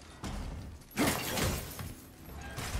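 A heavy chest lid creaks open with a thud.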